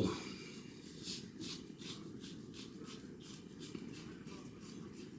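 A razor scrapes through stubble in short, rhythmic strokes.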